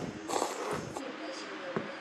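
A young woman sips broth from a bowl.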